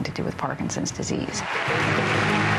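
A woman speaks calmly and close up.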